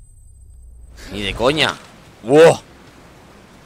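A man cries out loudly in two short bursts.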